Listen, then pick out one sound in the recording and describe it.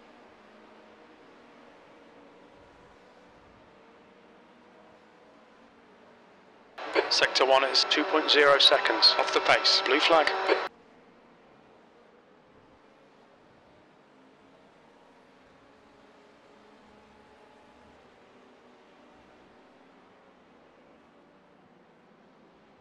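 Racing car engines hum steadily in the distance.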